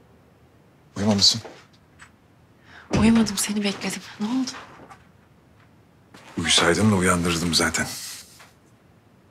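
A man speaks softly and warmly nearby.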